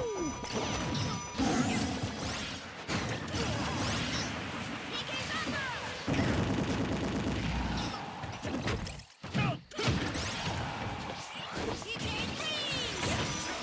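Fighting game hits and blasts crack and whoosh in quick bursts.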